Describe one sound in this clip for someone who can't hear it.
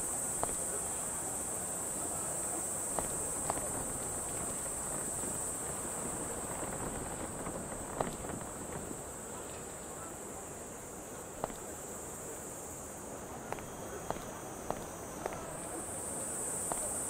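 Footsteps tap on hard pavement.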